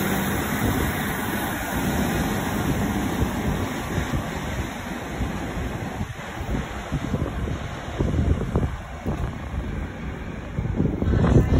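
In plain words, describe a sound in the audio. A diesel train rumbles as it pulls away.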